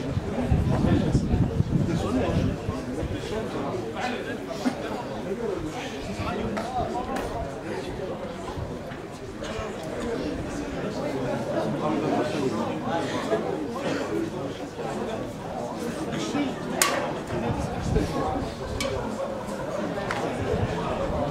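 Several men talk in low voices nearby, outdoors.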